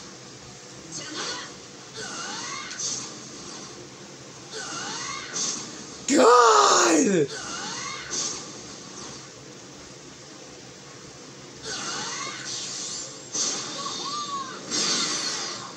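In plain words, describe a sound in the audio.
Fighting blows thud and smack in quick bursts.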